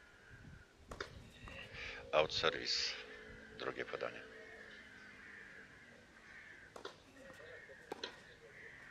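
A tennis racket strikes a ball outdoors.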